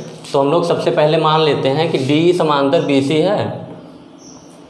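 A young man speaks nearby, explaining with animation.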